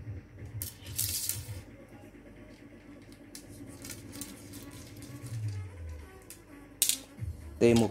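Fishing rods knock and rattle against each other as they are handled.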